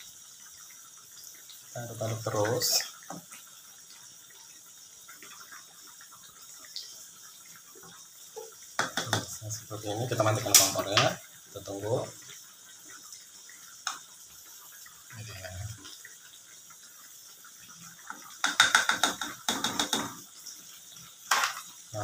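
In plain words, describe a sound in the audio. A spatula stirs and scrapes liquid in a metal pot.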